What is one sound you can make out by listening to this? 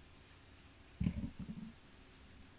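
A small object is set down on a table with a soft thud.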